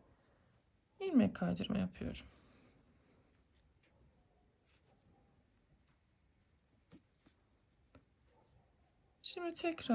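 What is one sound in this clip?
A crochet hook softly rubs and clicks against yarn.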